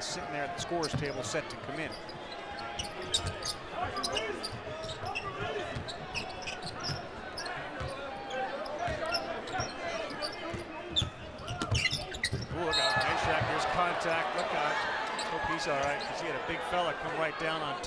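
A crowd murmurs in a large echoing arena, then roars louder.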